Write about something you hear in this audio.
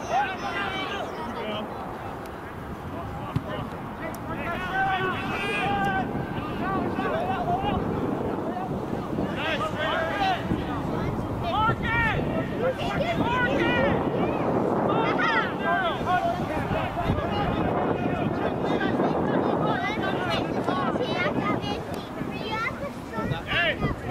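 Young players call out loudly to each other on an open field.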